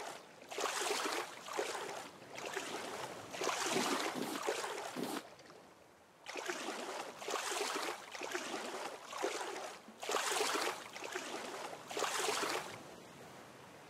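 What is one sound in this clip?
Water splashes in bursts with each swimming stroke.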